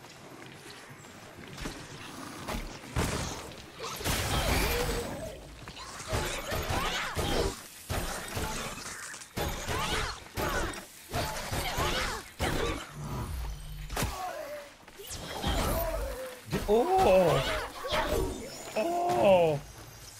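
Game weapons clash and strike with sharp hits.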